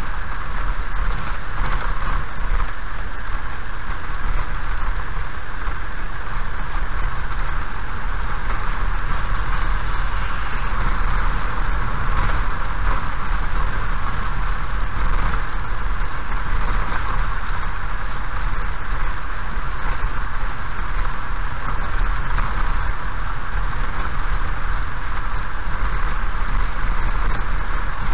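Tyres rumble and crunch on a gravel road.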